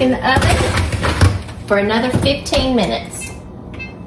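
An oven door thumps shut.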